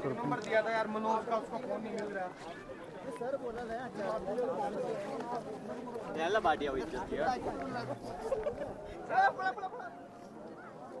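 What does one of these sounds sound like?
Nearby women and men talk in lively conversation outdoors.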